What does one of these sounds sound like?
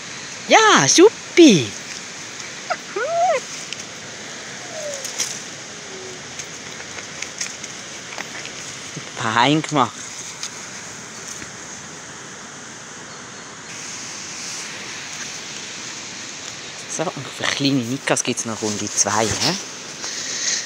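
A dog whines and howls in rising and falling yelps close by.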